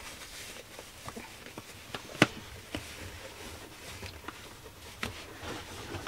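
A sock rubs softly as it is pulled onto a foot.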